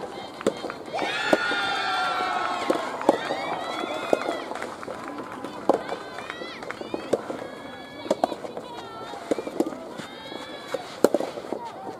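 Young women shout and call out across an outdoor court.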